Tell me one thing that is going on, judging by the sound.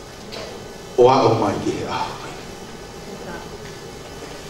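A man speaks into a microphone, heard through a loudspeaker.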